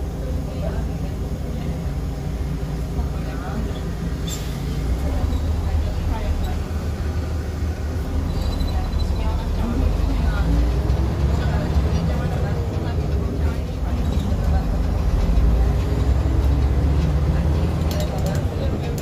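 A diesel city bus engine drones and accelerates, heard from inside the bus.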